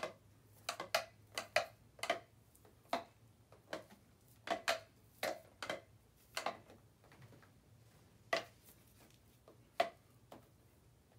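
A wooden stick knocks and scrapes against a small cup, again and again.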